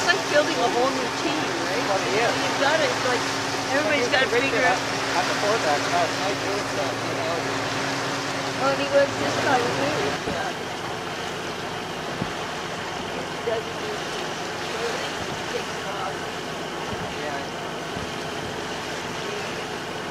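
Waves slap and splash against a sailboat's hull.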